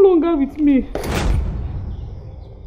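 A bag thuds onto the ground.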